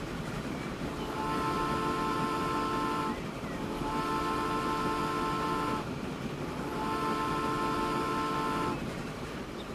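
A steam locomotive's whistle blows three long blasts.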